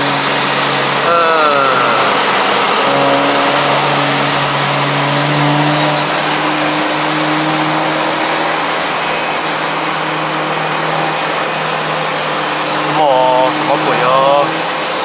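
A car engine revs up and drops sharply between gear changes.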